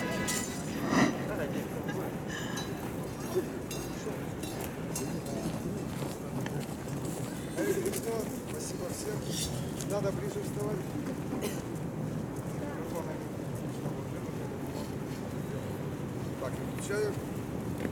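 Small hand cymbals clink now and then.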